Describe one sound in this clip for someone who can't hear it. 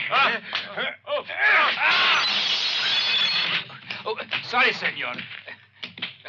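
A man shouts and groans while struggling.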